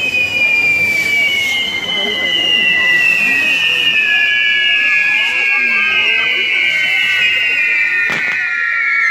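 Fireworks whistle and screech loudly, slowly falling in pitch.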